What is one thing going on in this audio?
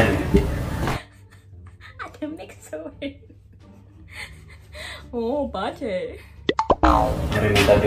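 Two young women talk and laugh close by.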